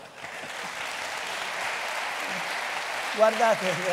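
A man laughs through a microphone.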